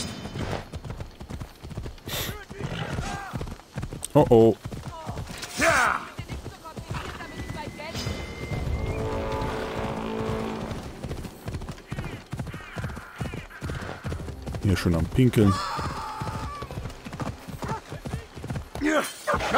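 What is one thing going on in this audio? A horse's hooves clop on a dirt path.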